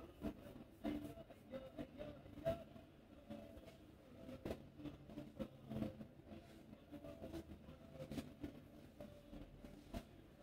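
Fingers rub and tap softly on a scalp and hair, close by.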